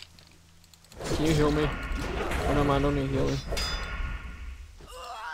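Spells crackle in a fight.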